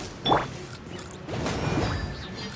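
A fireball bursts with a roar.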